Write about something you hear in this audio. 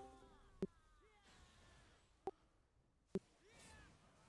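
Sharp hits crack during the fight.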